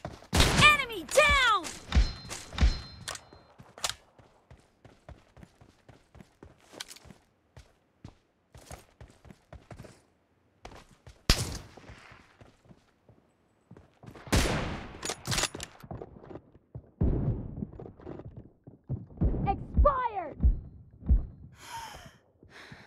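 Footsteps run quickly over grass and gravel.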